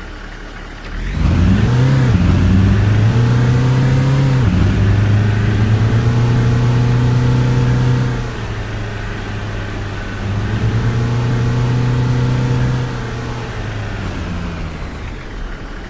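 A heavy truck engine roars and revs up through the gears as the truck pulls away.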